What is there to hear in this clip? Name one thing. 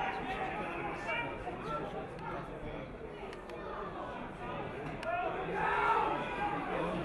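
A crowd cheers and shouts in an open stadium.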